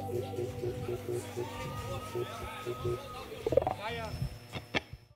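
An electric guitar plays a repeating riff through an amplifier.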